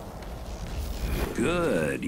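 A harsh electronic glitch noise bursts out.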